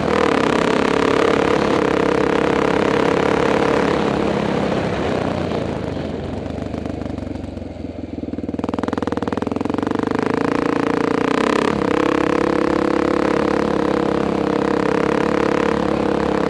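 A motorcycle engine drones steadily as the bike rides along.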